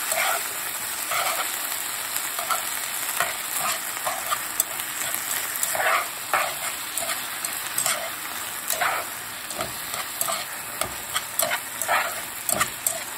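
Vegetables sizzle steadily in a hot pan.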